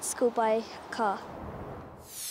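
A young girl speaks calmly and close by.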